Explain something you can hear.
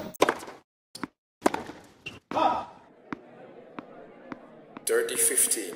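A tennis ball is struck with a racket, with sharp pops.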